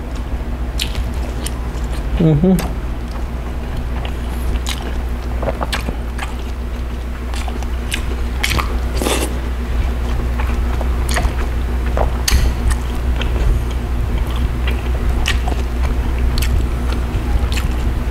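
A man chews food loudly and smacks his lips close by.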